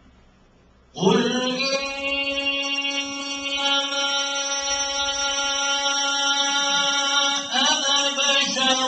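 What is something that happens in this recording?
A man sings a long, held note loudly into a microphone.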